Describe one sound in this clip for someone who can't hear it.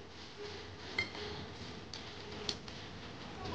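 Utensils clink against plates.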